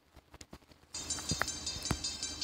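Electronic game music plays.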